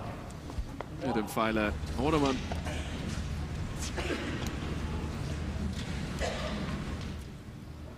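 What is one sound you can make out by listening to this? A man announces calmly through a microphone in a large echoing hall.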